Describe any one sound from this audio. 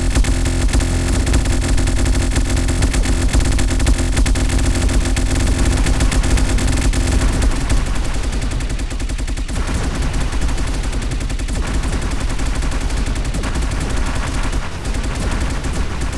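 Rapid electronic zaps and small bursts crackle.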